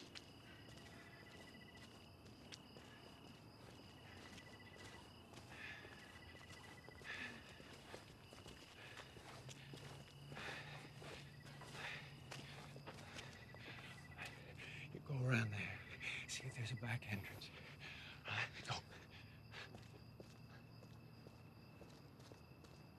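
Footsteps tap softly on pavement.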